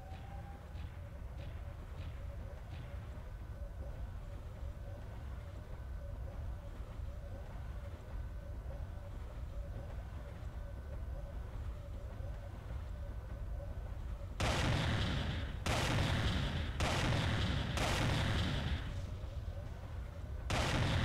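A heavy walking machine's engine hums and its steps thud steadily.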